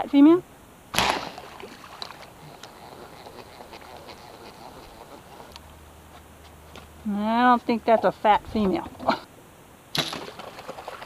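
A compound bow fires an arrow with a sharp twang.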